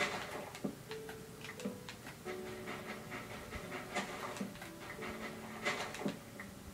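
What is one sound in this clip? Video game sound effects play from a television speaker, with short blips and tones.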